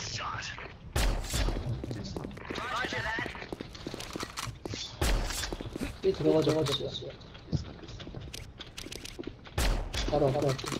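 A sniper rifle fires single loud shots.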